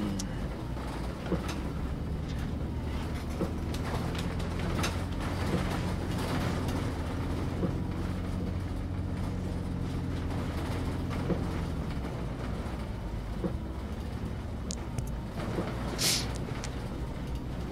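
Windscreen wipers sweep across the glass.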